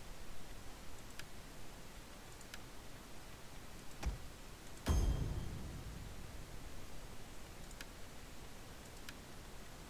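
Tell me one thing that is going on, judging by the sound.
Short soft clicks of a game menu sound now and then.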